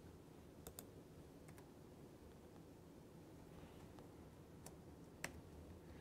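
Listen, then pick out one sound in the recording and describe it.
A man types on a laptop keyboard.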